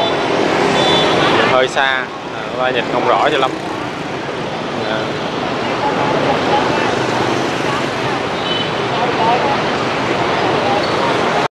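Motorbike engines hum steadily in busy street traffic.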